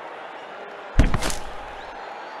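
A ball is struck with a hard thud.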